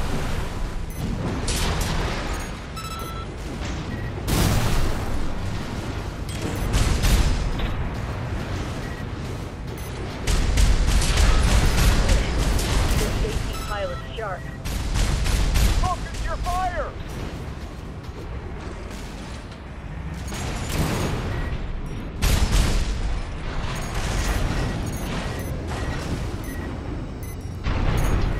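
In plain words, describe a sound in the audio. Mechanical thrusters roar and whoosh.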